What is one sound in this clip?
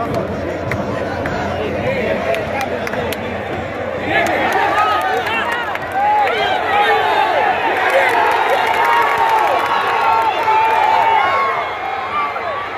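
A huge stadium crowd chants and roars loudly outdoors.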